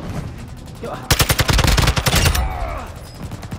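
Rapid gunshots fire in a loud burst.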